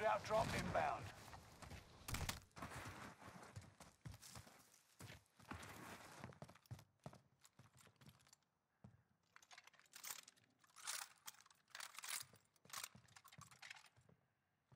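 Footsteps run over dirt and then across wooden boards.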